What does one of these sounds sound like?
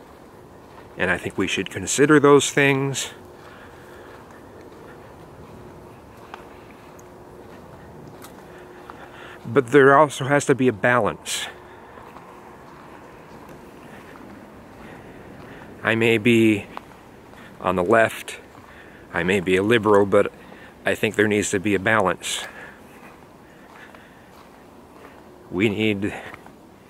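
A middle-aged man talks calmly close to the microphone, outdoors, in short bursts with pauses.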